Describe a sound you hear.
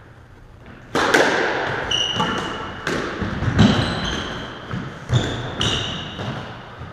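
A squash ball smacks hard against the walls with a ringing echo.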